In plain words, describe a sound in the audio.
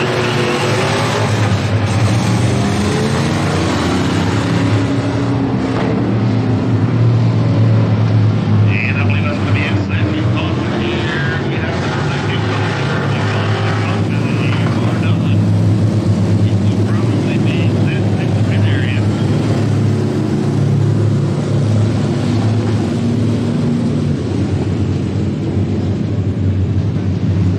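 Race car engines roar loudly around a dirt track, outdoors.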